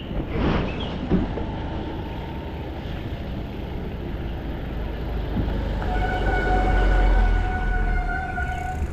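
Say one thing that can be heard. Bicycle tyres hiss over a wet road.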